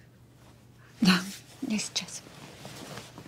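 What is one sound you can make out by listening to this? A woman speaks quietly and briefly, close by.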